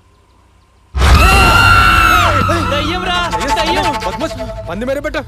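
A young man shouts loudly in alarm.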